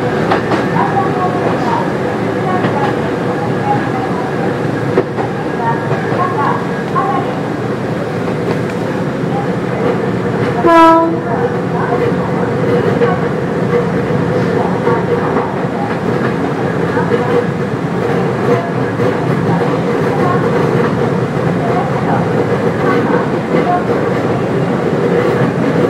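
An electric train motor hums with a steady high whine.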